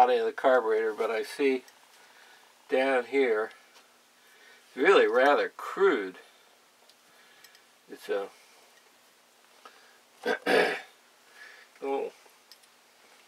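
An elderly man speaks calmly and close by, in short phrases with pauses.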